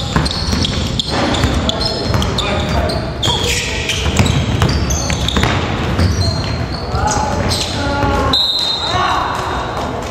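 Young men call out to each other in a large echoing gym.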